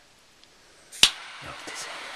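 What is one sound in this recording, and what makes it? A torch lighter clicks on.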